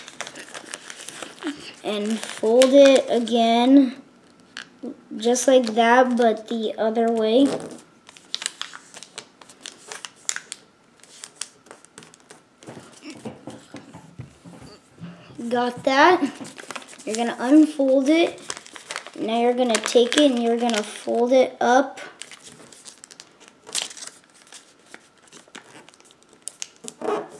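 Paper crinkles and rustles as it is folded.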